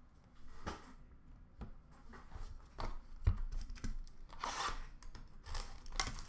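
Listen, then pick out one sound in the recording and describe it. Card packs tap and slide on a glass counter.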